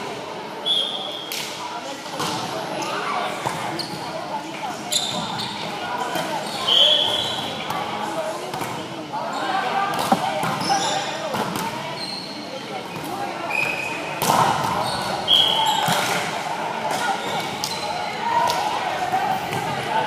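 Several young people talk and call out in a large echoing gym.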